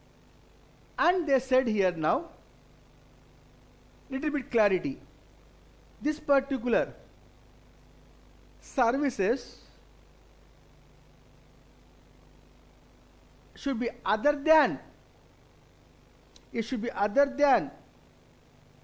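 A middle-aged man speaks calmly into a microphone in short bursts with pauses.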